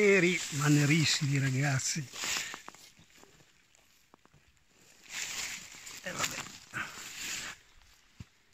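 Dry leaves rustle as a hand brushes them aside.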